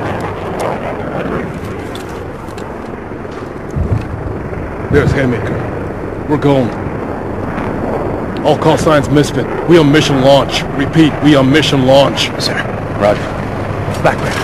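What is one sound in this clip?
Men speak in low, urgent voices over a radio.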